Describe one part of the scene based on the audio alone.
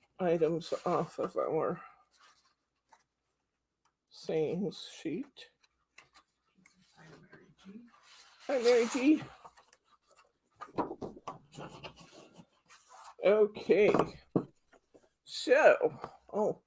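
Sheets of paper rustle as they are handled.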